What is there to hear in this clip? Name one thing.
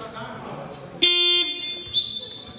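A referee's whistle blows sharply in an echoing hall.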